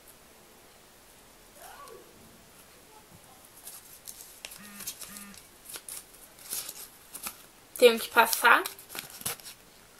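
Paper rustles as it is unfolded.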